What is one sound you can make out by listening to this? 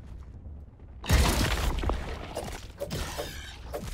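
Gravel bursts and scatters with a loud crunch.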